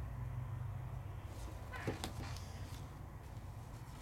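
A sheet of card rustles as it is lifted.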